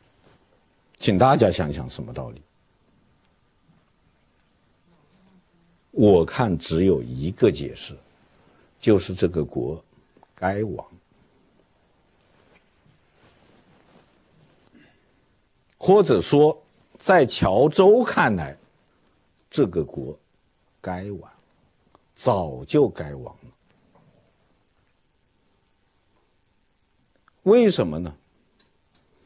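A middle-aged man lectures slowly and emphatically into a microphone, with long pauses between phrases.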